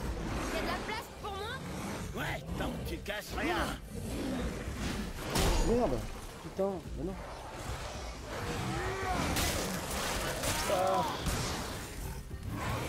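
A beast growls and snarls.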